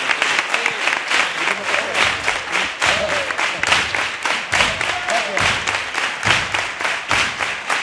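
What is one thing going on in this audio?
A man claps his hands in a steady rhythm.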